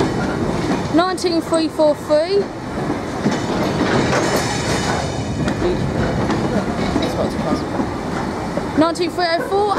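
Freight wagon wheels squeal against the rails.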